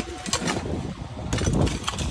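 A shovel scrapes and digs into dry, stony soil.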